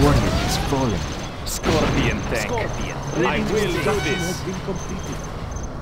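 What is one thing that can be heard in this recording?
Explosions boom and gunfire rattles in a battle.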